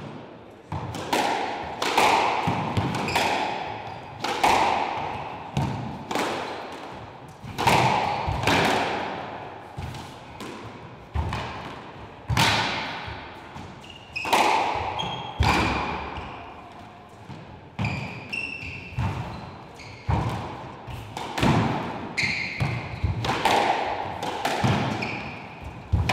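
A squash ball smacks hard against the walls, ringing through a large echoing court.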